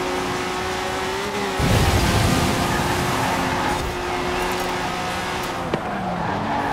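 A car engine roars at high revs as a rally car speeds down a road.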